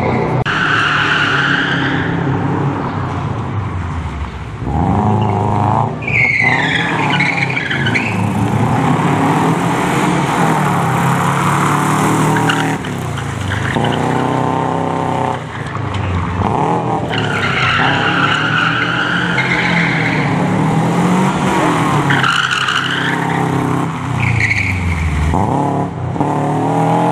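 A rally car engine revs hard and roars close by.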